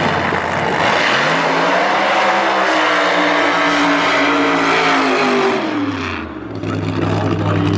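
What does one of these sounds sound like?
A dragster engine roars loudly, its pitch swelling and then falling away.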